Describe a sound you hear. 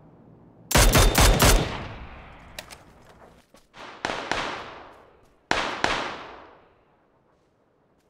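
Rifle shots crack loudly and echo away across open ground.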